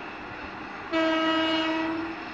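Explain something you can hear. A train horn sounds a long loud blast.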